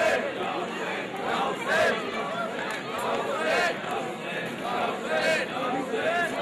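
A large crowd of men chants and wails loudly outdoors.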